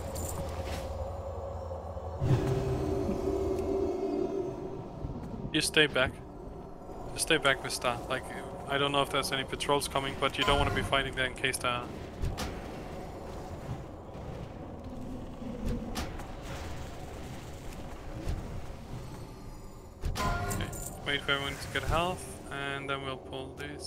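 Magic spells crackle and whoosh in a busy battle.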